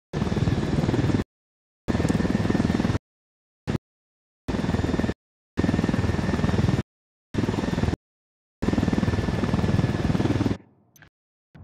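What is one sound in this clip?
A helicopter's engine and rotor roar loudly in short, abruptly cut bursts.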